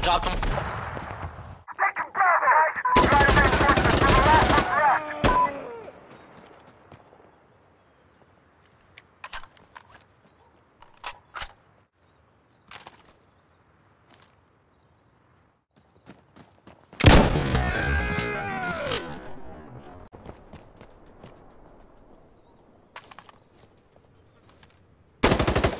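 A rifle fires in rapid bursts with echoing cracks.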